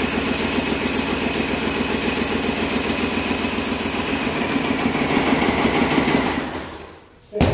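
A paint sprayer pump hums and hisses steadily, then stops.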